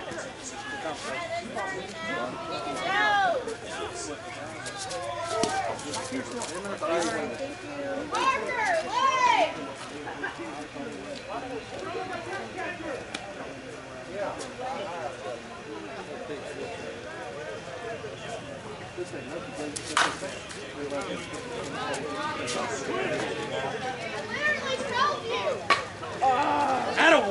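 Men and women chatter and call out across an open field.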